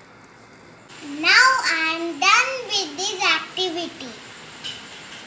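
A young girl speaks brightly and close by.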